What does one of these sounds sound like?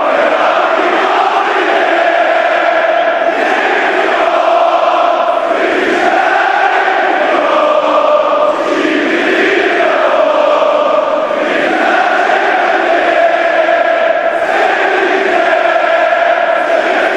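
A huge stadium crowd sings a chant loudly in unison.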